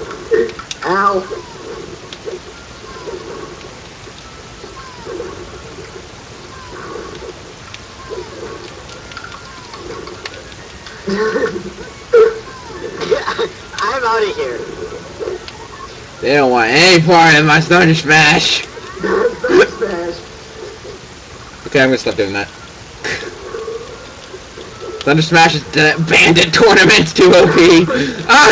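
Cartoon character voices yell and cry out in high pitches.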